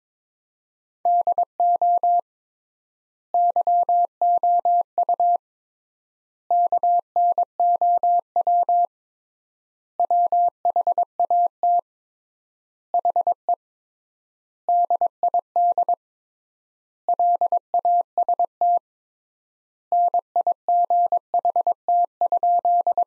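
Morse code beeps sound in quick bursts of short and long tones.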